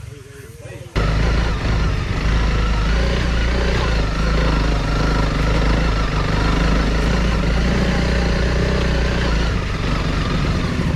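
A dirt bike engine drones loudly and steadily up close.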